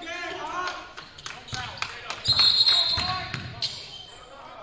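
A basketball bounces on a hard court in a large echoing gym.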